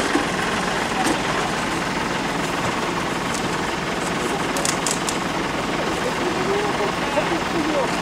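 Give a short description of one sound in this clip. A firefighter sweeps and scrapes debris off the road.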